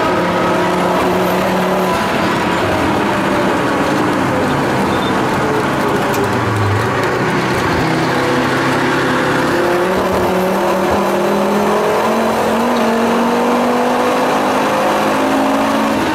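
Tyres and wind rush past the car steadily.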